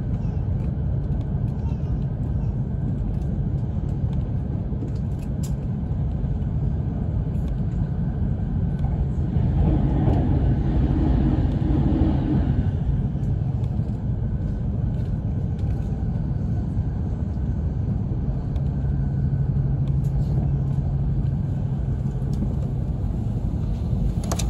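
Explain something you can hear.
A train rumbles steadily along the tracks, heard from inside.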